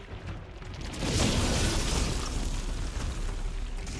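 Heavy debris crashes and scatters.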